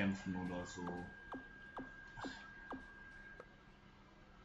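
Short falling electronic blips sound as a game menu is scrolled through.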